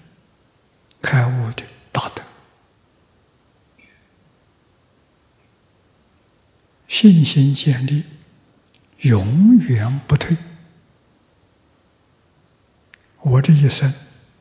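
An elderly man speaks slowly and calmly into a microphone, with long pauses.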